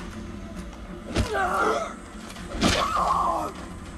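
A wooden plank thuds hard into a body.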